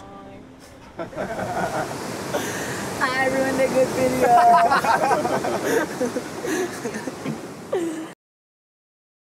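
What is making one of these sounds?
Acoustic guitars are strummed.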